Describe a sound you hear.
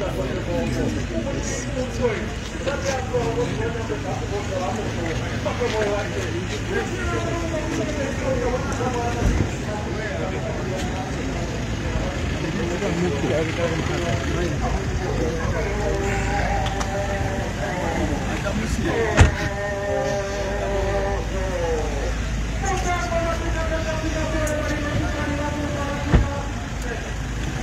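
A crowd of men talk and shout nearby, outdoors.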